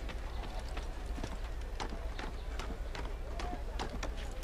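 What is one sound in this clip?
Hands and feet knock steadily on wooden ladder rungs.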